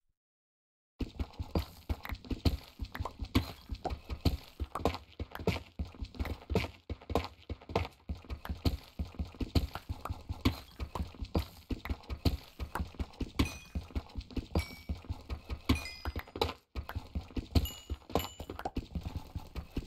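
A pickaxe chips rapidly and repeatedly at stone.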